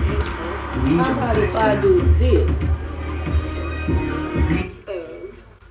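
Loud music plays from a television and then stops abruptly.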